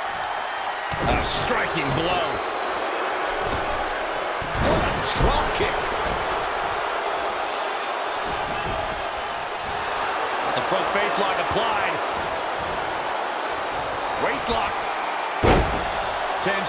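Heavy thuds of bodies slamming onto a wrestling mat.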